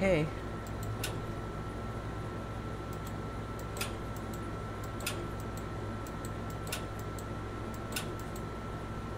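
A washing machine lid clanks open and shut.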